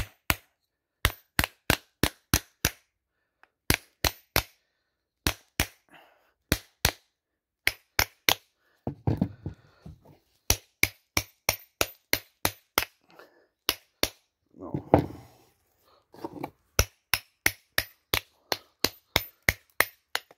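A hammer strikes metal in quick, sharp blows.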